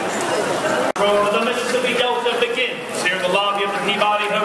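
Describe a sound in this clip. A man speaks loudly and clearly to a crowd.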